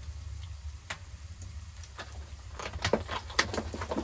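Water pours into a small metal pot.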